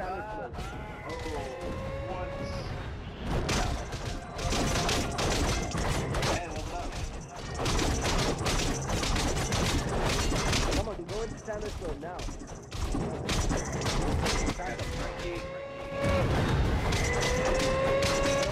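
Explosions and magic blasts burst now and then.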